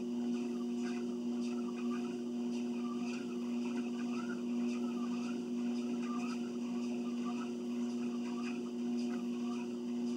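Footsteps thud on a treadmill belt.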